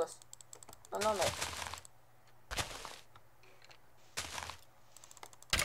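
Blocks crumble and break in quick bursts.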